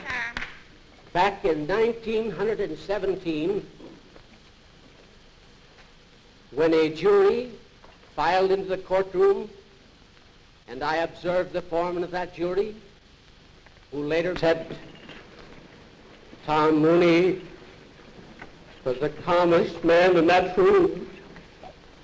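An elderly man speaks slowly and firmly into a microphone, pausing between phrases.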